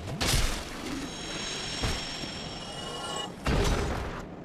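A bright chiming tone rings out and fades.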